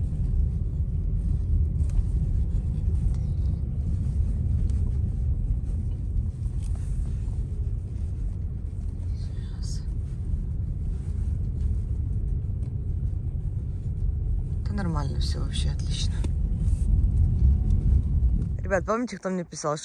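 A car engine hums steadily with road rumble from inside the car.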